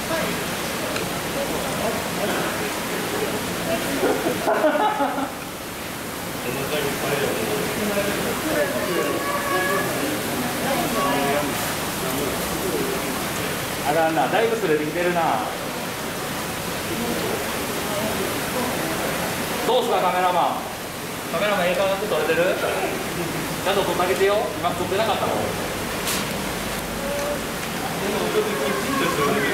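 Children talk and call out excitedly nearby.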